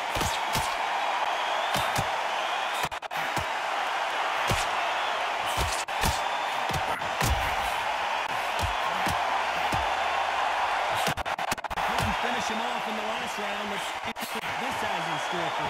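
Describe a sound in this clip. Punches land with dull thuds.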